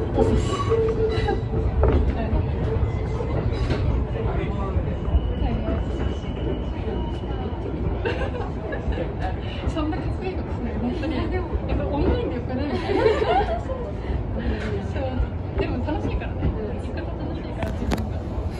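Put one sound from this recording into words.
Train wheels clatter and squeal over the rails.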